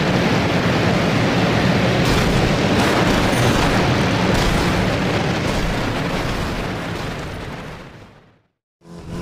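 A monster truck engine roars loudly and steadily, then fades away.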